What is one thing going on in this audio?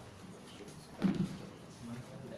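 A water bottle thumps down on a table.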